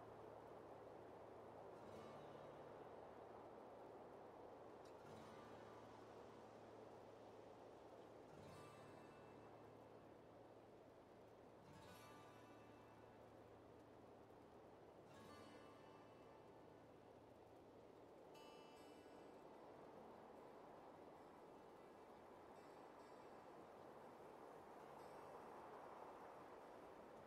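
A magical portal hums and swirls steadily.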